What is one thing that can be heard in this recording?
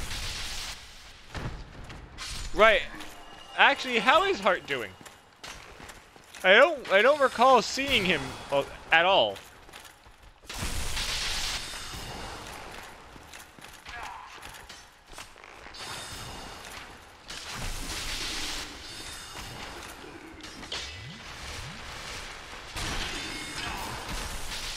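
Sword slashes and armour clanks ring out.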